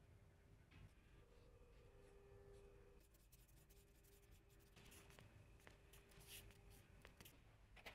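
A wooden stick stirs and scrapes inside a plastic cup.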